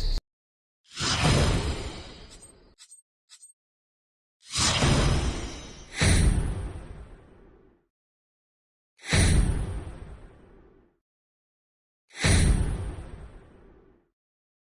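A deep whooshing boom sounds several times, each one fading out slowly.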